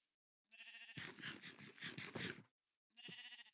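Someone munches food with quick crunchy bites.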